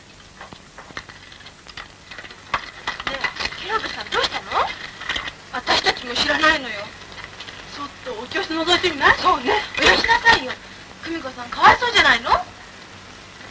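Several teenage girls chat with animation.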